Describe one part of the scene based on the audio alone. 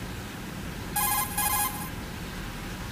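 An electronic radio tone beeps twice in quick bursts.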